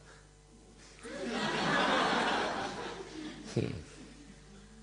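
A large audience applauds and cheers in a big hall.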